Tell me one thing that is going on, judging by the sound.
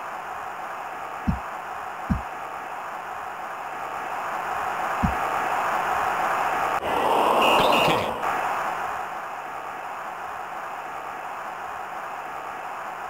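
A stadium crowd roars steadily and swells loudly for a moment.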